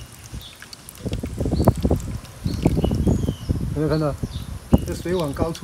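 Water bubbles and splashes gently in a bucket.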